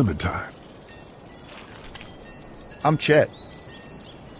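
A young man speaks casually and cheerfully.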